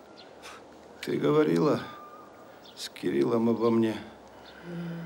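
A man speaks in a low voice nearby.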